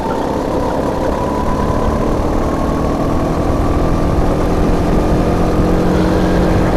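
A racing kart engine drones at full throttle close up, slowly rising in pitch.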